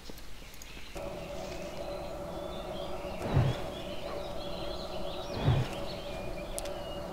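A magic spell hums steadily.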